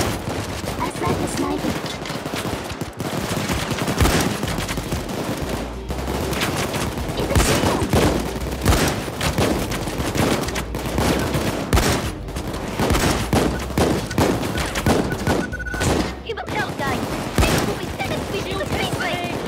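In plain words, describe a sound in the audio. Guns fire in rapid bursts, with sharp loud shots.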